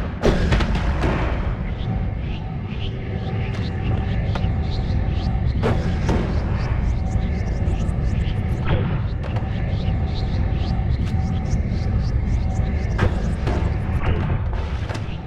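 A deep magical hum drones steadily.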